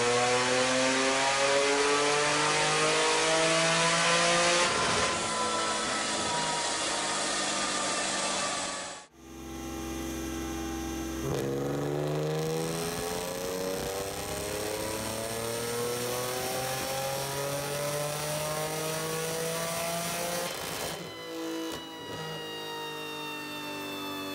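A car engine revs hard and loud, climbing in pitch again and again.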